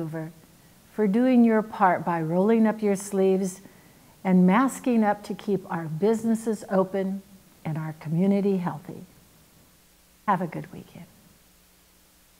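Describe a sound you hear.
A middle-aged woman speaks calmly through a microphone.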